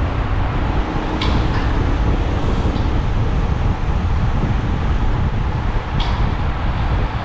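Wind rushes loudly past while riding at speed.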